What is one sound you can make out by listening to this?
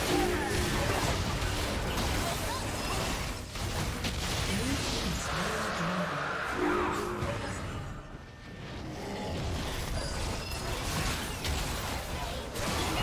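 Magic blasts and whooshes crackle in a fast fantasy battle.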